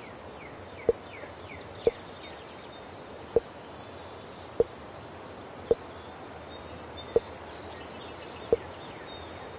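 Short soft pops sound again and again in a game.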